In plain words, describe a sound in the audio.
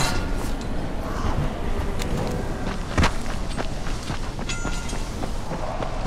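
Leaves and branches rustle as someone pushes through dense bushes.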